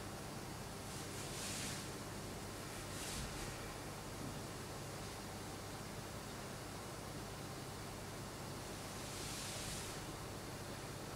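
Clothing rustles softly as a person shifts on the floor.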